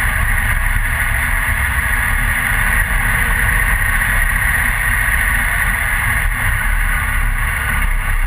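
Wind roars loudly against a helmet-mounted microphone.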